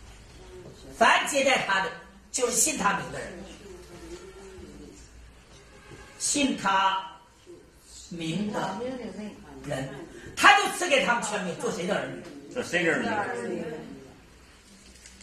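A man speaks in a lecturing tone, with a slight room echo.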